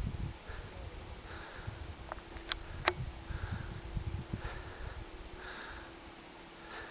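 Wind gusts outdoors, rumbling low.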